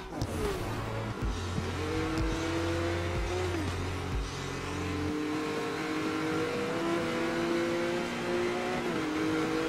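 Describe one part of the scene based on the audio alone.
A sports car engine revs and roars as it speeds away.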